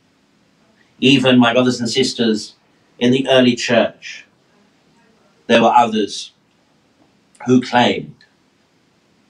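A middle-aged man speaks calmly into a nearby microphone in short phrases.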